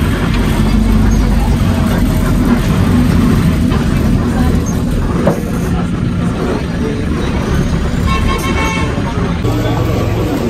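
A minibus engine rumbles steadily while driving.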